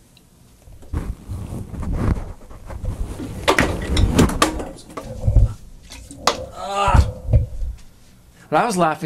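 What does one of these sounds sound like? Things knock and rattle on a table close by.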